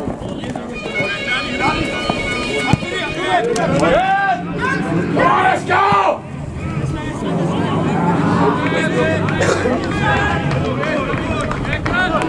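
Young men shout and call to each other outdoors, close by and farther off.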